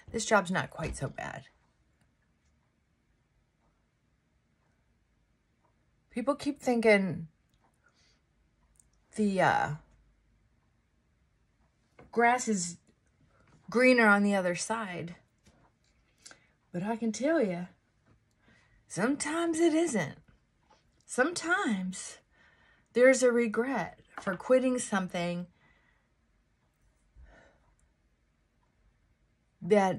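An older woman talks calmly and close by, in short bursts with pauses.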